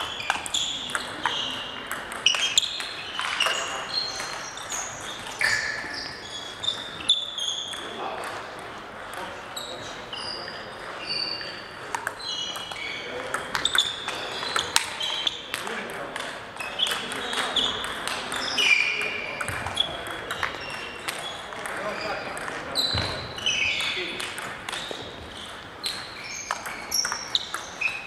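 A ping-pong ball clicks back and forth on paddles and a table.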